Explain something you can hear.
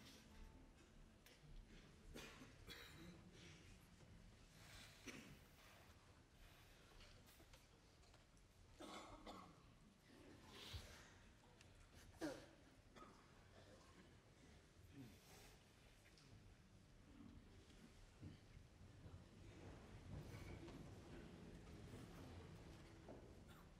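An audience coughs and shuffles quietly in a large echoing hall.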